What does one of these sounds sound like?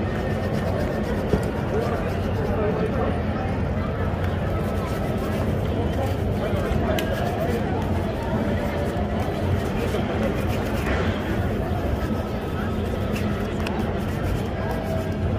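A hand rubs and slaps polish onto a leather shoe.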